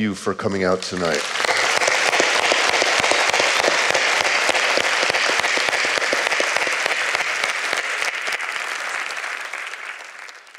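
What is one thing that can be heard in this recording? An audience applauds loudly in a large hall, then the applause slowly fades.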